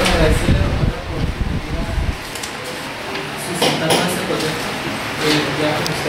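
Papers rustle as sheets are handled.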